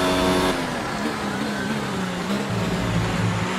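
A racing car engine drops in pitch as the car brakes into a corner.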